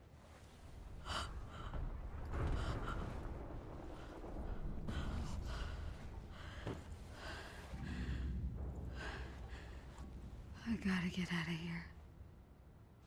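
A young woman speaks fearfully, close by.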